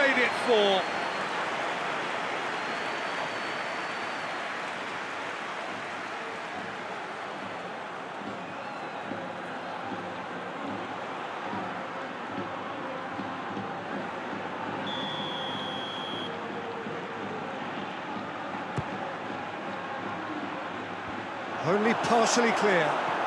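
A stadium crowd roars and murmurs in a football video game.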